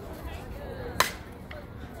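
A bat strikes a softball with a sharp crack.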